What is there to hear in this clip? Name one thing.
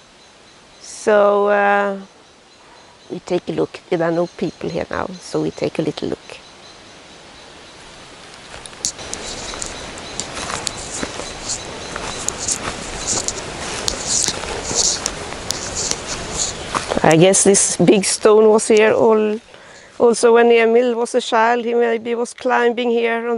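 An elderly woman speaks calmly close by, outdoors.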